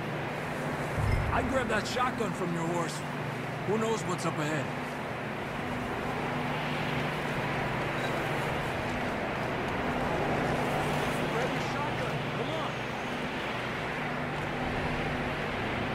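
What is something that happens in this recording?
A man's boots trudge through deep snow.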